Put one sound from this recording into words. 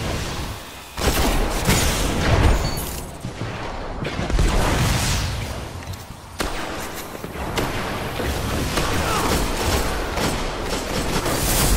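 Guns fire in rapid bursts close by.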